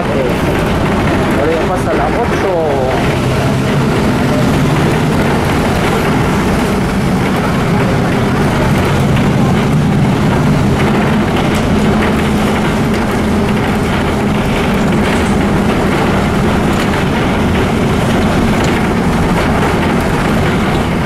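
A vehicle engine hums steadily from inside a moving vehicle.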